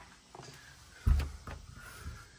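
A key turns in a door lock with a sharp click.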